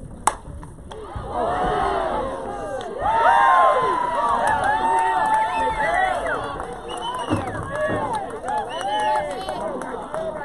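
Young women cheer and shout excitedly outdoors.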